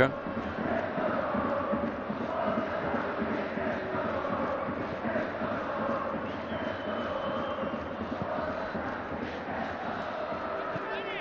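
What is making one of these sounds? A large stadium crowd chants and roars steadily.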